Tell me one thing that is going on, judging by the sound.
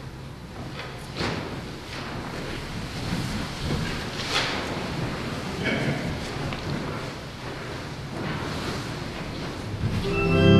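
An elderly man speaks quietly, heard through a microphone.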